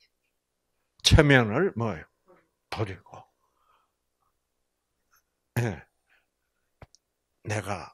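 An elderly man speaks slowly and expressively into a microphone, with pauses.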